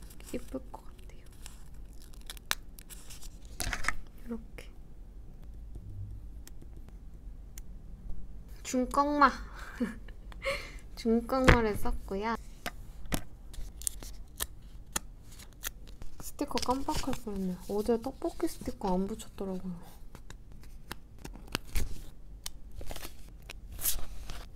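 Tweezers tap lightly on paper.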